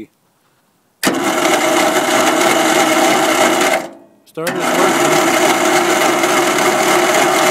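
A small petrol lawnmower engine roars loudly, cuts out briefly and starts again.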